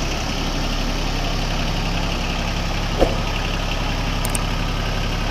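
A diesel tractor engine idles with a steady, rattling chug.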